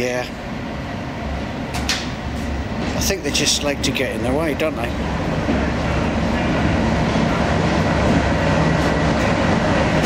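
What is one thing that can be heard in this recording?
A diesel locomotive's engine rumbles low and grows louder as it approaches.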